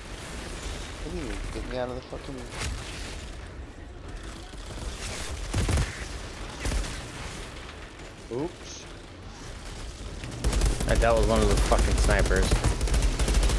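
A young man talks with animation.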